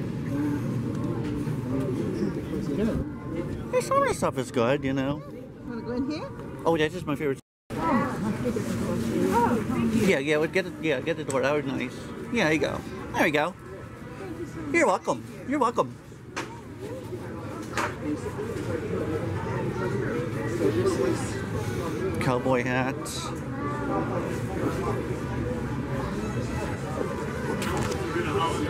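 A crowd of men and women chatter nearby.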